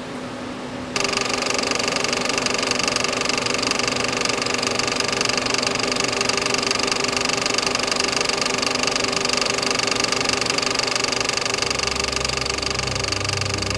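A film projector whirs steadily.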